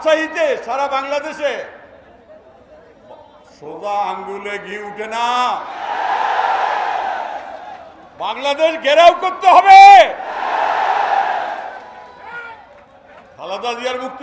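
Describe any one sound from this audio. An elderly man speaks forcefully through a loudspeaker, in bursts with pauses.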